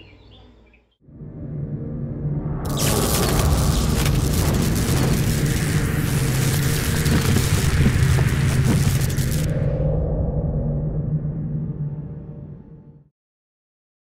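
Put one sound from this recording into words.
A deep rumbling boom swells and fades.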